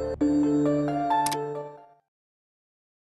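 A bright chiming jingle plays briefly.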